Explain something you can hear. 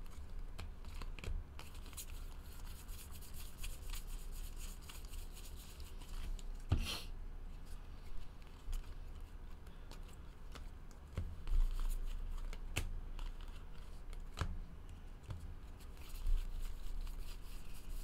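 Trading cards flick and slap together as they are shuffled by hand.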